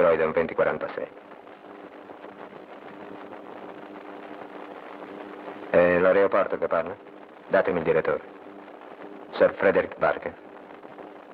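A man speaks calmly into a telephone, close by.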